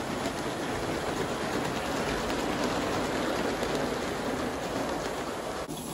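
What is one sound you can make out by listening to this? A model train rumbles and clatters steadily along its track close by.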